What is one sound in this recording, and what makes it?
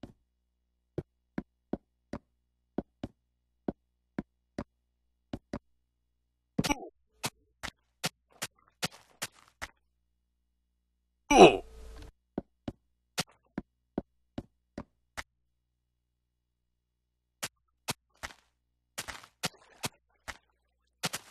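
Footsteps tap in quick succession as a game character walks over wooden planks and grass.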